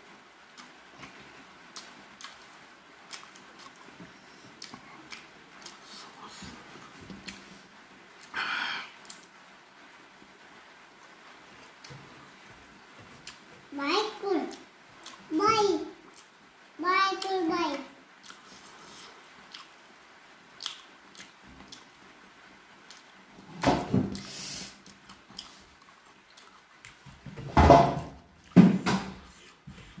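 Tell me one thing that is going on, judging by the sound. A man chews and smacks his lips while eating close by.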